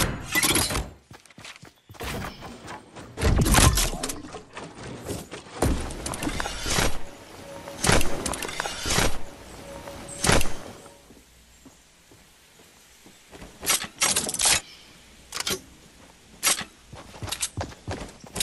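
Wooden planks snap into place with sharp knocks, again and again.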